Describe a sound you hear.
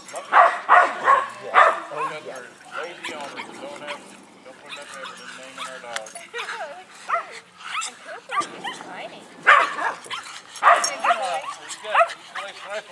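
Several dogs bark excitedly and yip close by.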